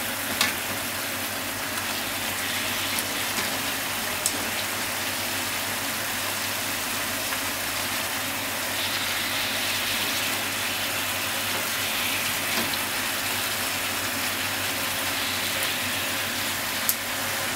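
Chopsticks tap and scrape against a pan now and then.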